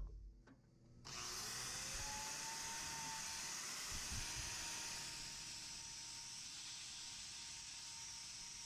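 An angle grinder whines steadily as it grinds hoof.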